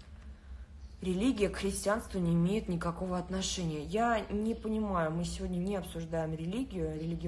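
A young woman speaks calmly close to a phone microphone.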